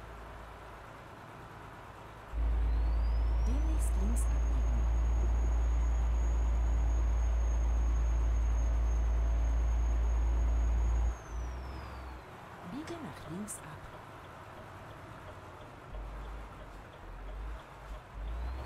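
A truck engine drones low and steady, loudest for a while before easing off.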